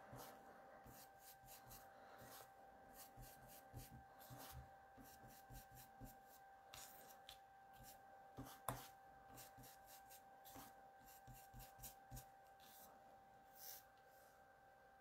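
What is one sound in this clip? A foam dauber taps softly and repeatedly on paper.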